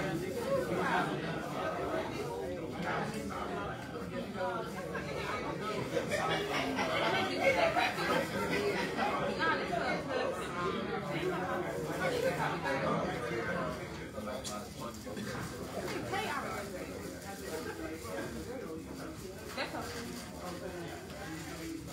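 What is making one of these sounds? Many adults chatter at once in a large room.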